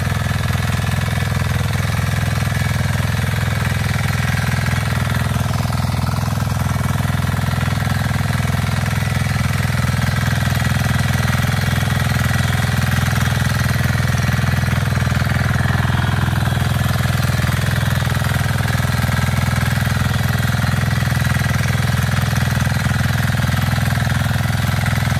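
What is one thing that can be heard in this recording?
A small petrol engine drones loudly and steadily close by.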